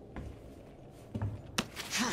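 Broken glass crunches and scrapes as a window frame is climbed through.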